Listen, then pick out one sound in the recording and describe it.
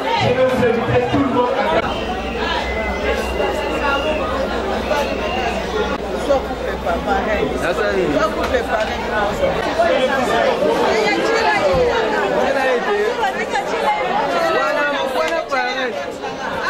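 Many people chatter loudly all around in a crowded room.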